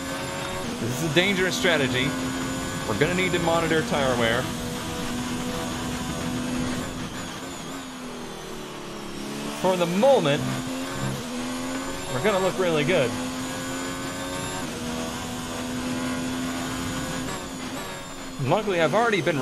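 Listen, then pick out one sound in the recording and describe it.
A racing car engine screams at high revs, rising and dropping sharply with each gear change.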